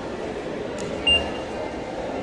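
A ticket gate beeps as a card is tapped.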